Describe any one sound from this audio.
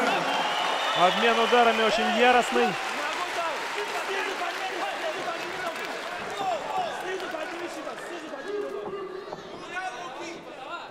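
A crowd chatters and cheers in a large hall.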